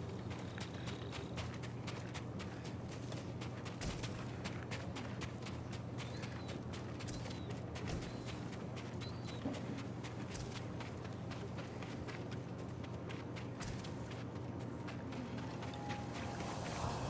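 Footsteps run quickly over gravel and dirt.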